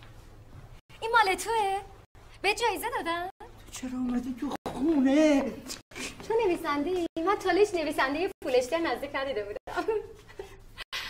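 A woman speaks cheerfully nearby.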